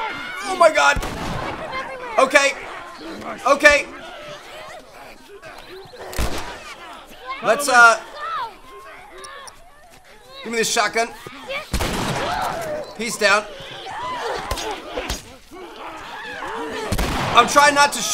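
Gunshots bang sharply now and then.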